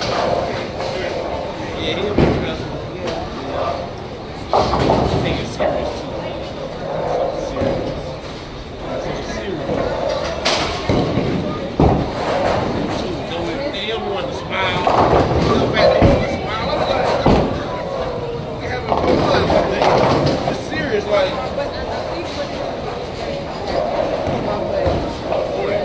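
Many people chatter in a busy, echoing hall.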